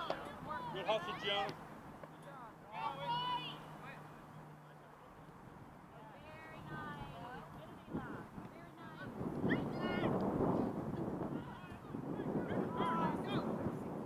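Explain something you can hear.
Young players shout to each other outdoors across an open field.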